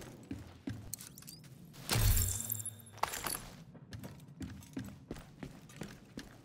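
Footsteps tread on a hard floor at a steady pace.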